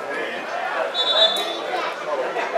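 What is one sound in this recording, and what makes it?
A referee's whistle blows shortly.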